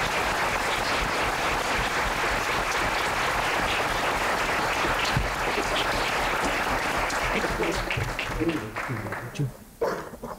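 A crowd applauds in a room.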